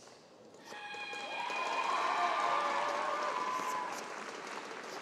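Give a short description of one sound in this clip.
A young woman calls out loudly in a long, drawn-out shout in a large hall.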